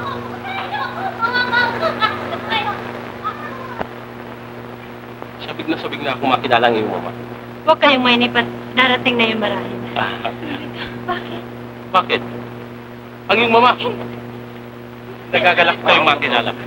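A young woman talks brightly, heard through an old, hissy film soundtrack.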